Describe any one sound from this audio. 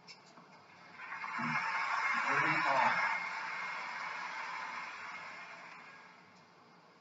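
A crowd applauds and cheers, then fades.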